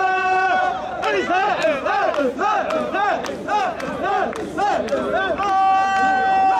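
A crowd of men chant loudly in rhythm outdoors.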